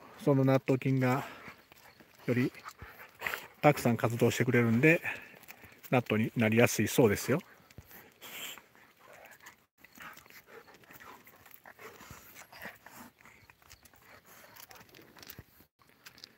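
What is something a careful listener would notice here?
Dog paws scratch on concrete.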